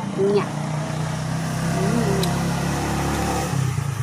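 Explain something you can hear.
A young woman chews and smacks her lips loudly.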